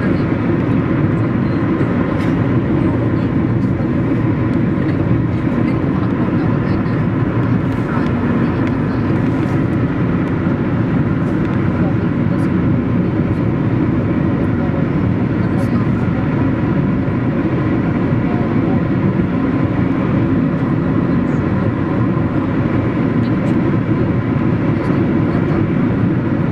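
Tyres roar steadily on a highway.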